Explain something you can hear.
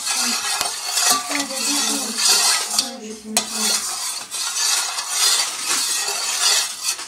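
A spoon clinks against the side of a bowl.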